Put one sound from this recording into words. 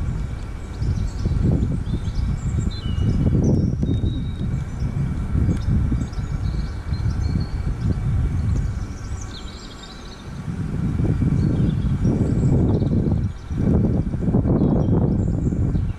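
Wind gusts buffet loudly outdoors, dropping briefly before picking up again.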